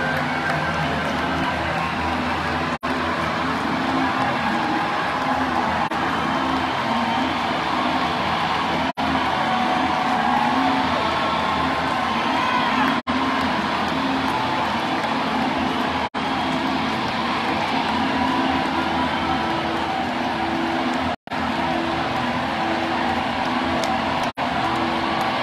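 A rock band plays loudly through a large outdoor sound system.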